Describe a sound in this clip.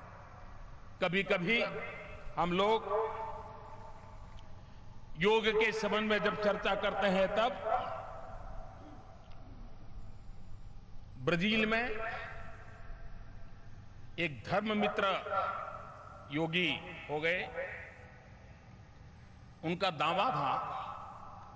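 An elderly man speaks forcefully into a microphone, heard through loudspeakers with echo.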